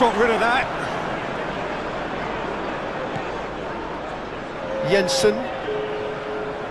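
A large stadium crowd murmurs and roars steadily outdoors.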